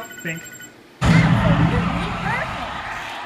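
An arcade dance machine plays loud music and sound effects.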